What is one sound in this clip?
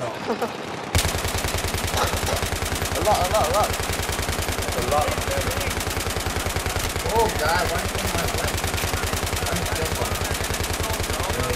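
An automatic rifle fires rapidly and without pause.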